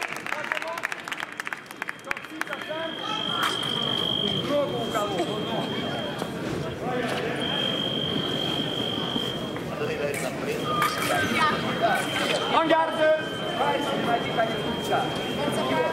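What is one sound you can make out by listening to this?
Fencers' feet tap and shuffle on the strip.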